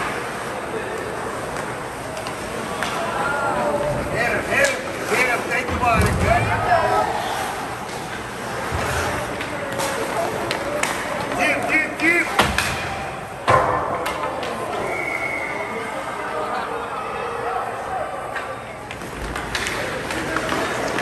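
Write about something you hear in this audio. Skates scrape and hiss across the ice.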